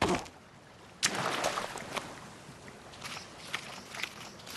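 Water splashes and sloshes underfoot.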